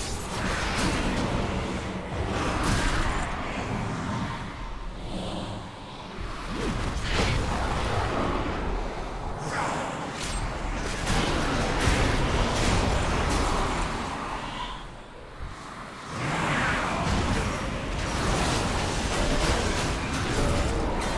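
Magic spell effects crackle and whoosh in a fight.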